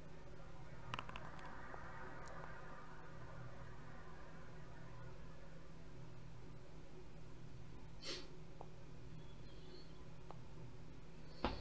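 Dice rattle briefly as they roll.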